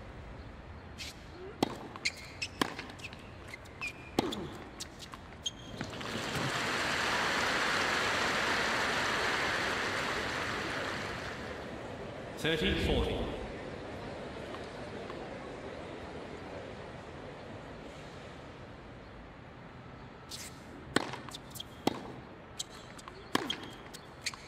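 A tennis ball is struck back and forth with sharp pops of rackets.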